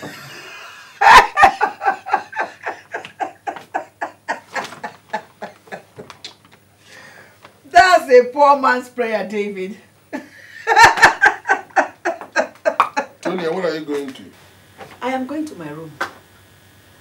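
A middle-aged woman talks with animation.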